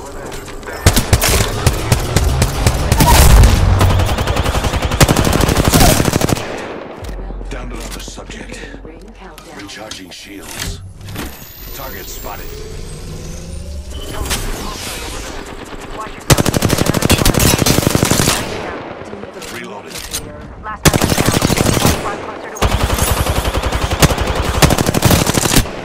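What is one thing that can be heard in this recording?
Rapid automatic gunfire rattles in long bursts.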